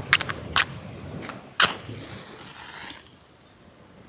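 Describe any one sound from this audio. A match strikes and flares.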